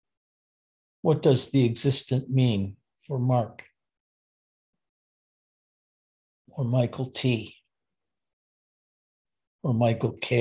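An elderly man speaks calmly in short phrases through an online call.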